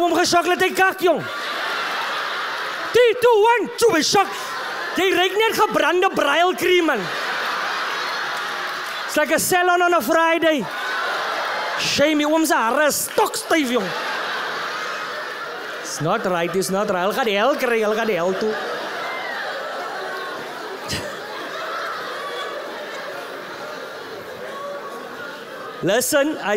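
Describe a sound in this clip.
A man speaks with animation into a microphone, amplified in a large hall.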